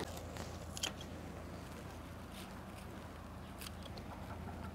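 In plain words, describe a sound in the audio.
Garden shears snip through flower stems.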